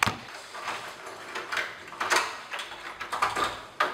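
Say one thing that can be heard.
A wooden door clicks open.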